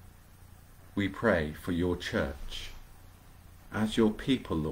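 A middle-aged man speaks calmly into a nearby microphone, as if on an online call.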